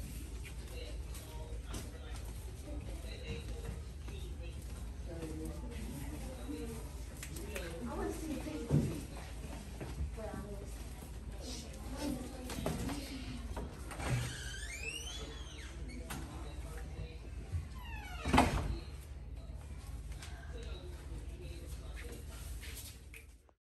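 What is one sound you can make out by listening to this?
Young girls chatter and call out nearby, in an echoing hallway.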